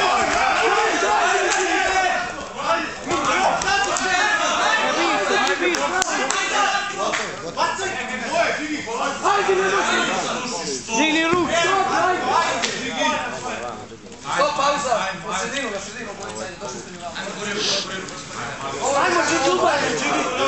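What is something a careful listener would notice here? A crowd of men shouts and cheers in a large echoing hall.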